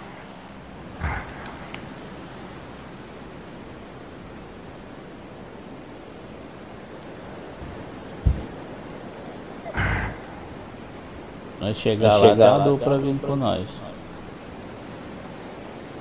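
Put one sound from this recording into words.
Wind rushes past a skydiver in free fall.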